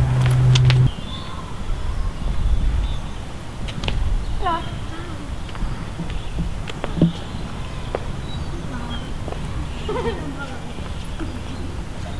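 Footsteps walk on pavement outdoors.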